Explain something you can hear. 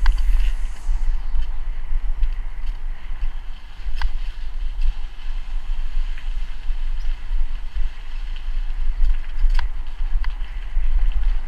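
Bicycle tyres roll over a rough, bumpy lane, with occasional knocks.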